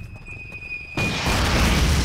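A submachine gun fires a burst.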